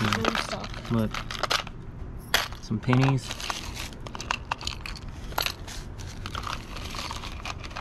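Metal jewellery clinks and rattles as a hand rummages through it.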